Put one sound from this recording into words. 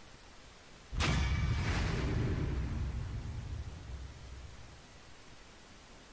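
A short, bright musical fanfare bursts in loudly and slowly fades.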